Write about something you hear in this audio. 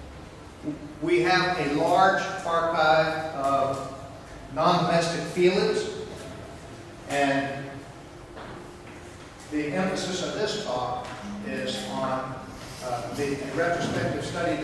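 A middle-aged man speaks steadily, giving a lecture through a microphone.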